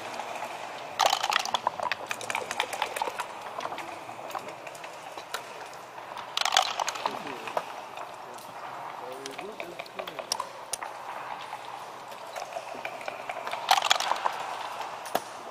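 Dice rattle and tumble across a board.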